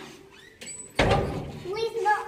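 A door thumps.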